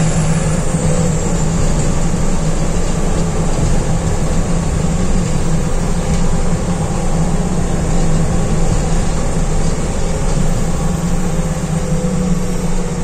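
A bus engine hums steadily from up close.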